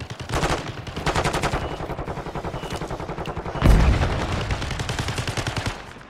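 Rapid automatic gunfire rattles.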